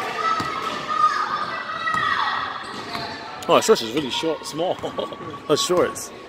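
A basketball bounces with dull thumps on a wooden floor.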